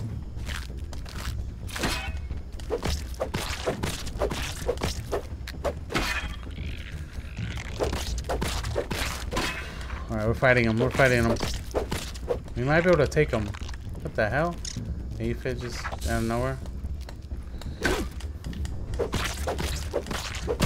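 A blade strikes a giant ant with sharp, repeated hits.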